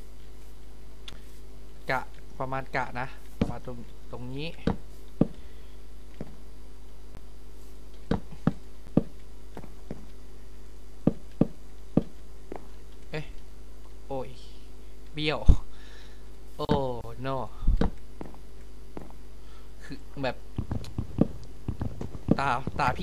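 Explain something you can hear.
Wooden blocks knock sharply as they are placed, one after another.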